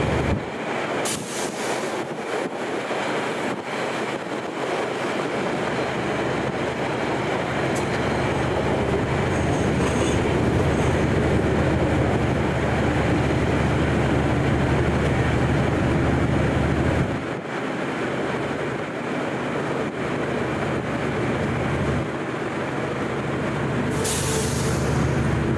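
Train wheels clatter and squeal over rail joints.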